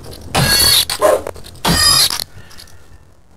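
A blade swishes through the air and strikes a creature.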